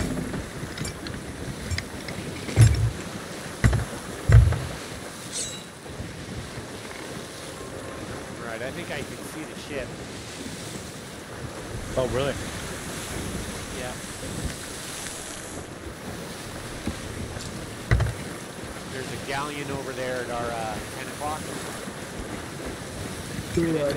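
Wind blows steadily over open water.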